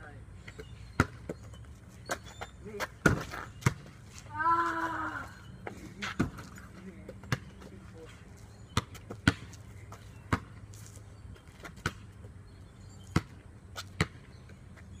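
A basketball bounces on concrete outdoors.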